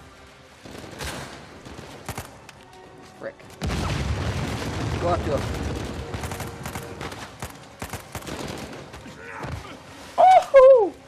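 Gunshots crack in quick bursts, echoing around.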